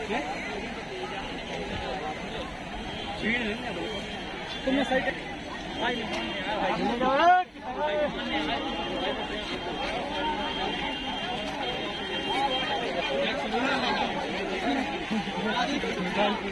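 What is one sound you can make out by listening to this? A large outdoor crowd of men and women talks and calls out all around.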